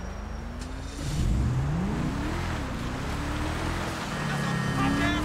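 A car engine revs and accelerates away.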